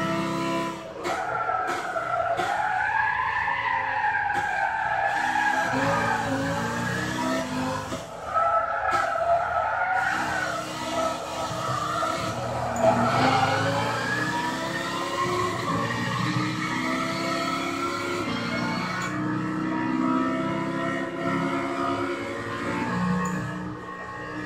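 A racing car engine roars steadily, its pitch rising and falling with the gears.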